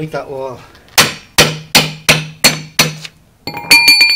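A heavy mallet bangs sharply on metal several times in quick succession.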